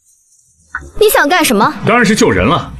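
A young woman asks a question sharply, close by.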